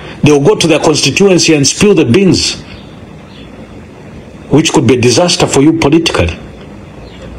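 A man speaks forcefully and with animation, close to a microphone.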